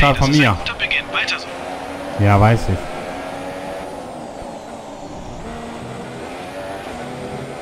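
A racing car engine roars at high speed, revving up and down as gears change.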